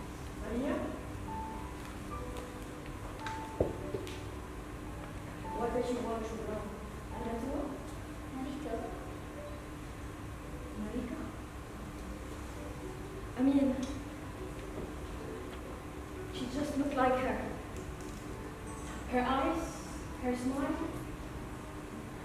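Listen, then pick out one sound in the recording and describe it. A woman speaks, heard from a distance in a large room.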